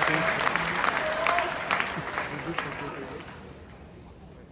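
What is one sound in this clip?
A large crowd claps and cheers in a big echoing arena, then quiets down.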